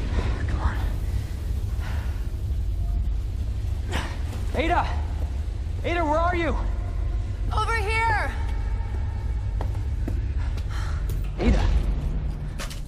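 A young man calls out with worry.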